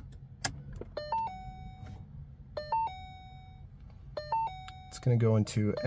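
A car's instrument panel chimes with short electronic beeps.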